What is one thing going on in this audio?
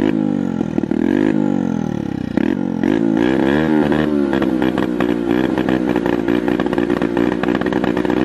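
A motorcycle engine idles close by, revving up and down unevenly.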